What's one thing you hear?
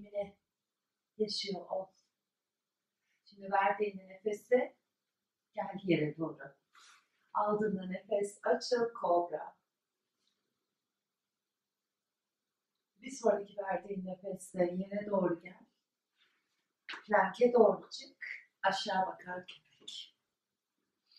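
A woman speaks calmly, giving instructions.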